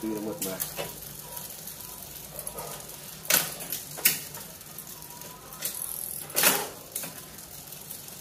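A bicycle chain clicks and rattles as a crank turns.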